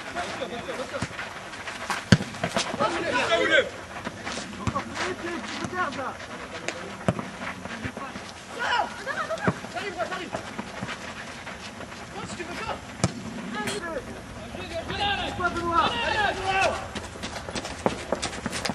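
Young men shout to each other outdoors across an open field.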